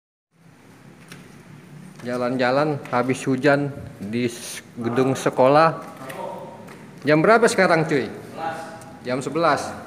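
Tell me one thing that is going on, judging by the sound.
Footsteps climb tiled stairs.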